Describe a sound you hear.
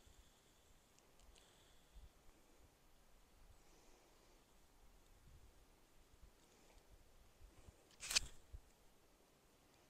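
Hair rustles and brushes close against a microphone.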